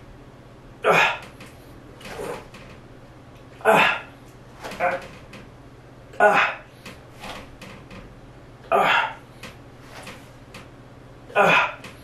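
A man exhales sharply and strains in rhythmic bursts, close by.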